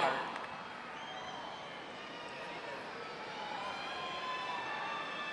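A brass band plays softly.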